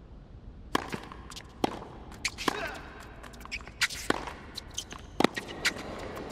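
A tennis ball is struck hard with a racket, back and forth.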